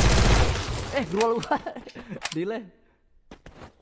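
A boy speaks with animation close to a microphone.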